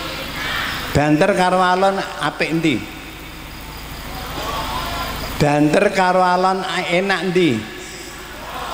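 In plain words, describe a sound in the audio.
An elderly man sings slow drawn-out phrases into a microphone.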